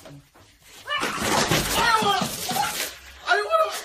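A man crashes to the floor with a clatter.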